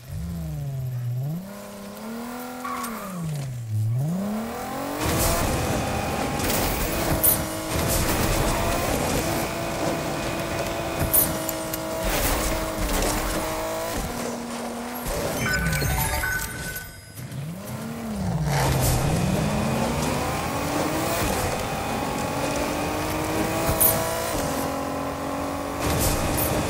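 A game car's engine hums and whines, rising and falling in pitch as the car speeds up and slows down.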